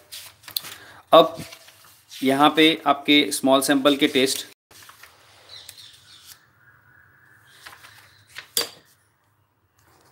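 Paper pages rustle and flap as a book's pages are turned.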